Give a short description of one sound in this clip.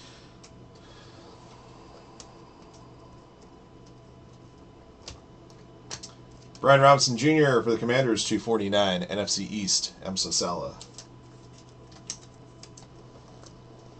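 Trading cards slide and flick against each other in a person's hands.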